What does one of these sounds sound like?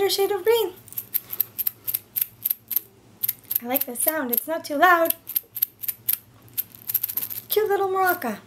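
A small egg shaker rattles in quick, even shakes.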